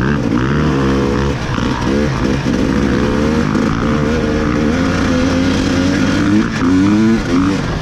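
A motor engine revs loudly up close, rising and falling in pitch.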